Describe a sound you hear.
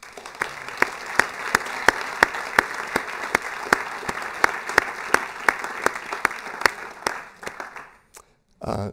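An audience claps together in a steady rhythm in a large hall.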